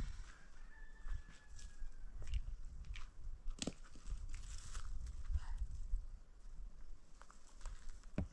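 A woman scrapes and taps at dry ground.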